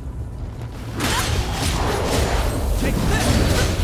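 A fiery blast bursts with a roar.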